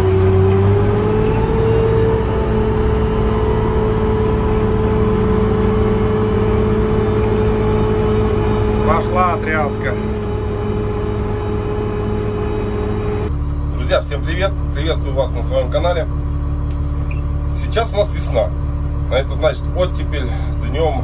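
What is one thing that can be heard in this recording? A motor grader's diesel engine runs, heard from inside the cab.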